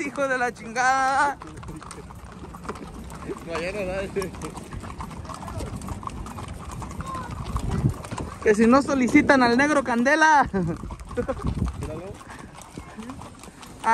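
Horses' hooves clop on a paved road.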